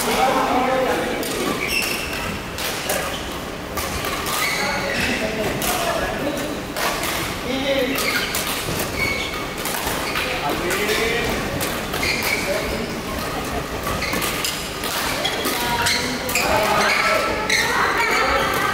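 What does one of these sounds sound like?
Several voices murmur and call out in the echoing hall.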